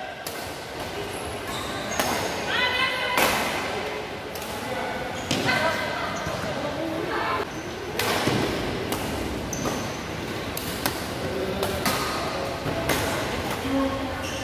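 Shuttlecocks are struck with sharp pops of rackets in an echoing hall.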